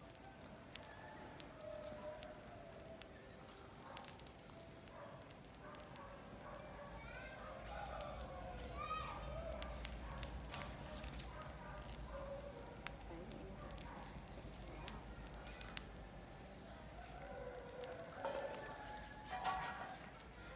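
A fire crackles and pops steadily close by.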